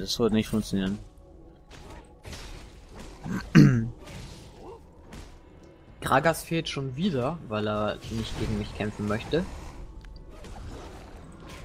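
Blows and magical bursts clash in a quick fight.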